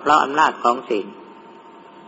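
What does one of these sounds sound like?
An elderly man speaks calmly and briefly.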